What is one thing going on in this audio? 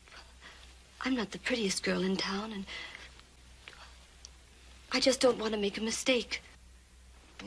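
A woman speaks with concern nearby.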